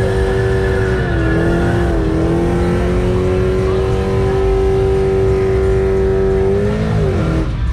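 Tyres screech as they spin on pavement.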